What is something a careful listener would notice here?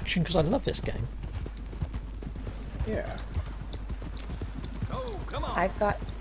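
Horse hooves clop on a dirt path.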